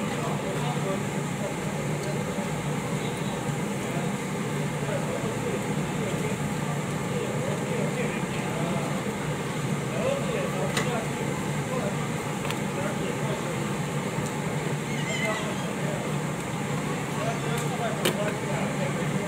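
Squid sizzles on a hot grill.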